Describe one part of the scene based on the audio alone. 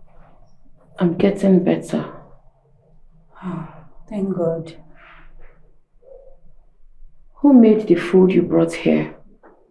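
A young woman speaks weakly and pleadingly, close by.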